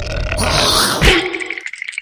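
A hard punch lands with a thump.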